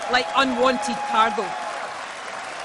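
People in a crowd cheer and whoop loudly.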